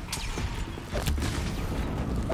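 Flames roar in a burst of fire.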